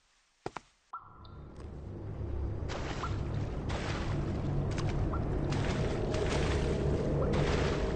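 Footsteps crunch slowly on rocky ground.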